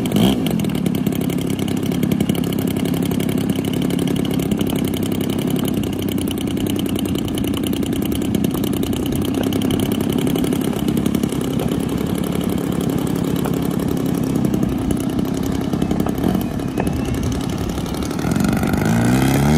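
A model plane's engine idles with a steady, throbbing buzz.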